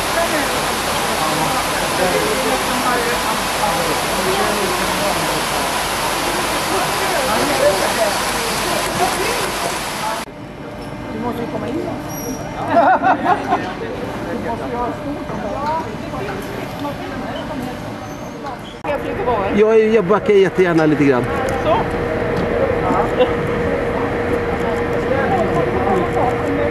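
Several people murmur and talk in a large echoing hall.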